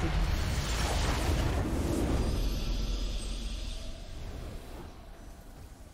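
A triumphant victory fanfare plays and fades.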